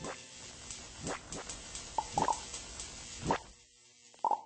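Light footsteps patter quickly on a hard floor.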